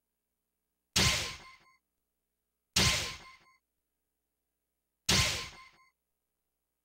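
A short electronic chime sounds several times.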